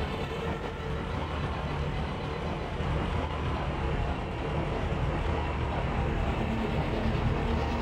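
A boat engine hums steadily while moving across water.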